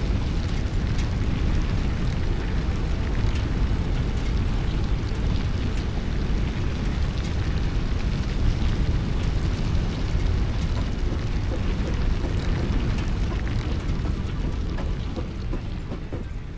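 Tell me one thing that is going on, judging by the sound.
A mining tool rumbles and grinds steadily.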